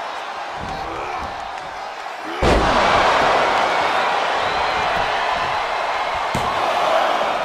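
A large crowd cheers loudly, swelling suddenly.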